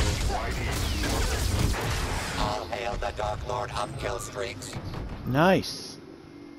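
A lightsaber hums and buzzes.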